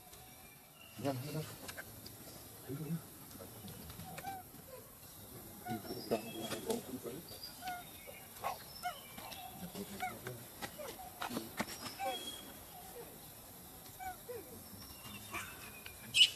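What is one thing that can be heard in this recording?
A baby monkey squeaks softly up close.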